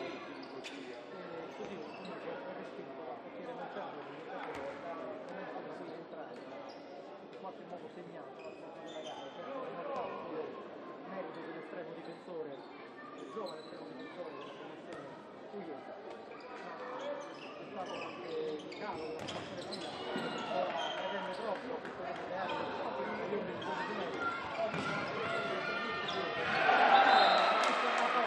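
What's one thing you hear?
A crowd of spectators murmurs and cheers in a large echoing hall.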